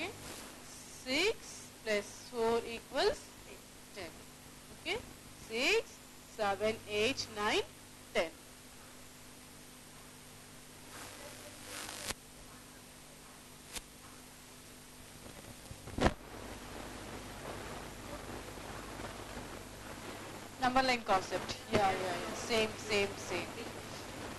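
A woman speaks calmly and clearly into a close microphone, pausing between phrases.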